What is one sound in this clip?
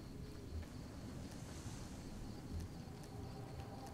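Dry bushes rustle as someone pushes through them.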